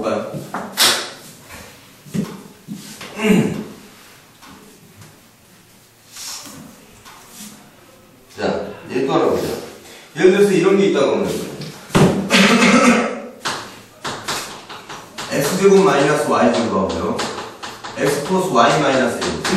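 A man lectures with animation into a microphone.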